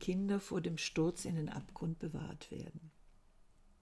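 An older woman speaks calmly into a microphone, heard as if over an online call.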